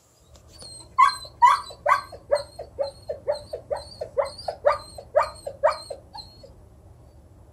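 A dog whines in short, repeated high cries close by.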